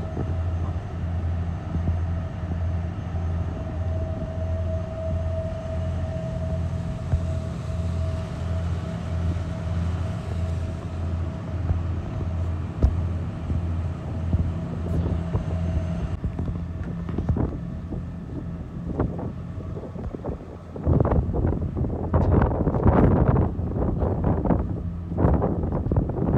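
A ship's diesel engine throbs steadily.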